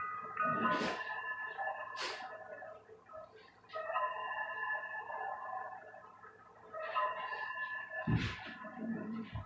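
A small electric fan whirs steadily.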